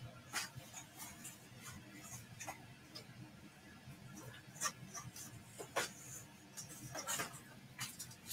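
Foam sheets rustle and tap as hands handle them.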